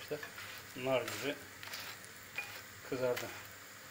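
Metal tongs clack against a griddle.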